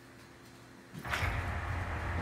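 A low, steady rumble of game background sound plays.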